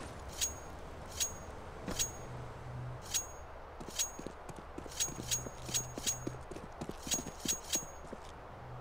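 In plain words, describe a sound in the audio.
Footsteps clatter quickly on a hard surface.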